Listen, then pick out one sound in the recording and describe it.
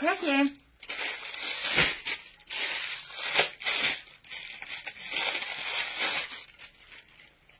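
A woman rustles through a pile of clothes close by.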